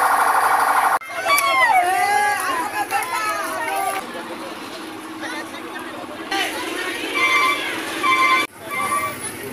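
A crowd of men shout and call out nearby.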